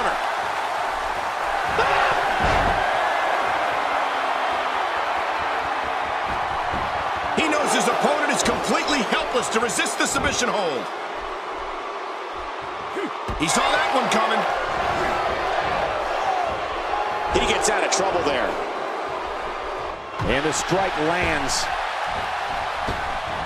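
A crowd cheers and roars.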